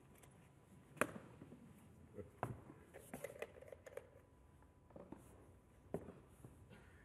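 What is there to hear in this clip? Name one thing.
A lid taps onto a small box.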